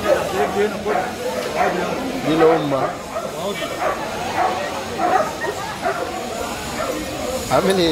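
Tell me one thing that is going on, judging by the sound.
Several men talk nearby over one another.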